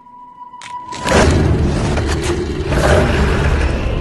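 A car engine starts and roars loudly.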